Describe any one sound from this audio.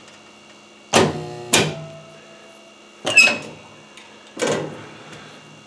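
A spot welder fires with short, sharp snaps.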